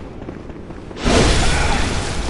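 A blade slashes into a creature with a wet, heavy splatter.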